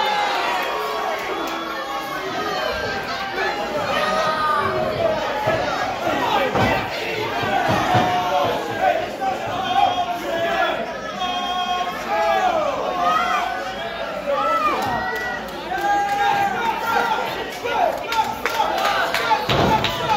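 A crowd of men and women chatters and shouts in a large echoing hall.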